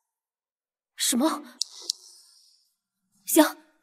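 A young woman speaks into a phone in surprise, close by.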